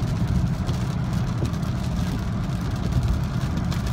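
Windscreen wipers sweep across the glass.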